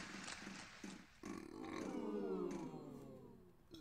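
A game wheel ticks as it spins.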